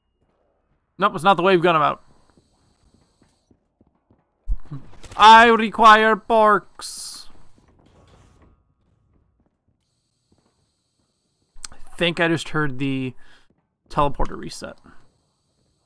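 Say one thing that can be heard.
A young man talks into a close microphone in short, lively bursts.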